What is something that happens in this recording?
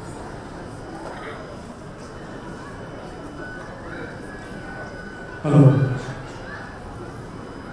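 A young man speaks with animation in a large echoing hall.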